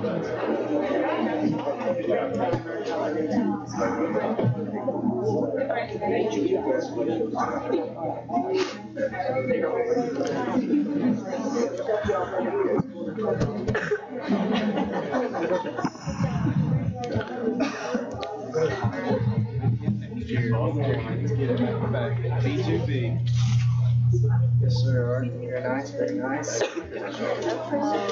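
A crowd of people chatter in a large room.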